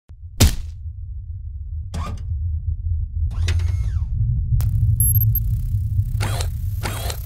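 A heavy metal robot clanks as it steps.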